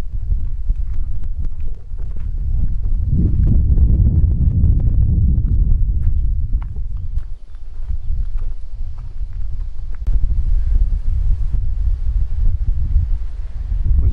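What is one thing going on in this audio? Footsteps crunch on a stony path.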